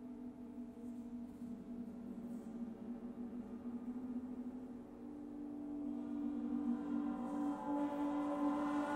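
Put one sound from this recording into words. A large gong hums and shimmers with a deep drone that swells louder toward the end.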